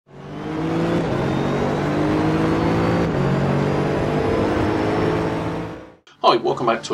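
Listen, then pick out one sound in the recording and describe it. A racing car engine roars at high revs, shifting up through the gears.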